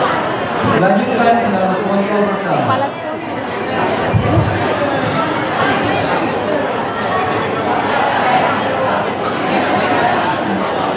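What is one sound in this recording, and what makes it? A crowd of men and women chatter in a large, echoing hall.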